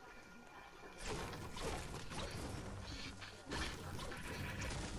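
A pickaxe chops against a tree.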